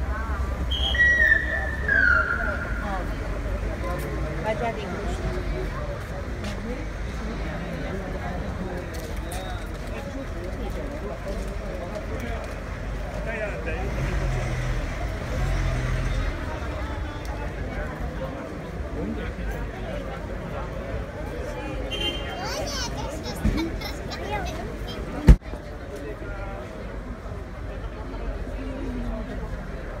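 A crowd of men and women murmurs and chatters nearby outdoors.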